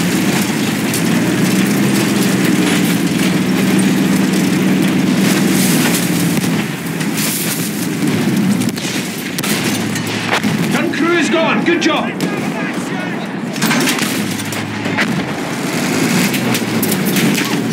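A tank engine rumbles heavily.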